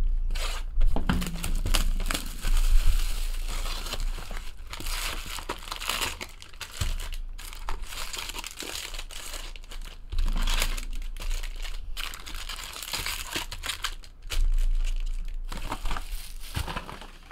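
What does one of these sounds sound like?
Plastic-wrapped packs crinkle and rustle as they are handled.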